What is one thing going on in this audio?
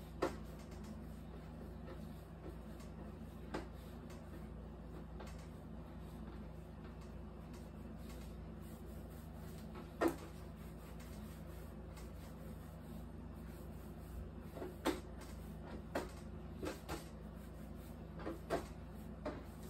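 Hands roll and thump bread dough on a wooden table.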